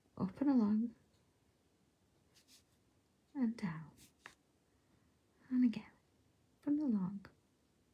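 A felt-tip pen scratches softly across paper.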